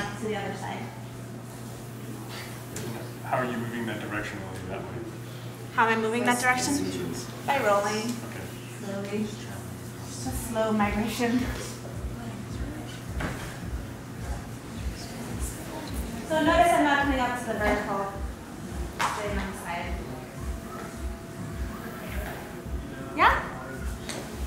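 A dancer's body slides and thumps on a wooden floor.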